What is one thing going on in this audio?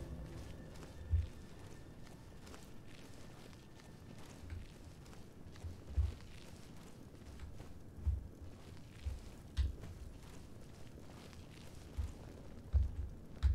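A magic spell crackles and hums softly.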